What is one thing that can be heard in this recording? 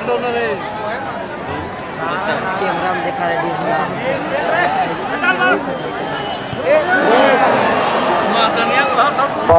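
A large outdoor crowd chatters and shouts.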